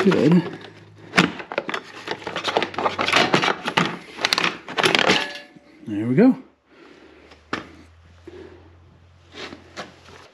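A metal part clanks and scrapes as it is handled.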